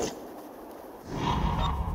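Wind rushes past as a large bird swoops down.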